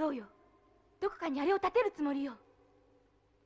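A young man speaks urgently.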